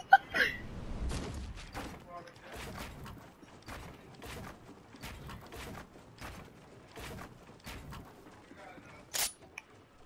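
Footsteps thud quickly across wooden planks.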